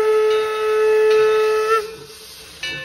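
A steam locomotive whistle blows loudly.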